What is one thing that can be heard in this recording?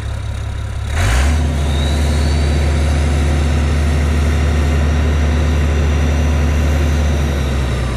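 A tractor engine revs louder.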